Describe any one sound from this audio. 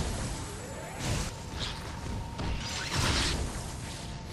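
An energy blast bursts with a sizzling crackle.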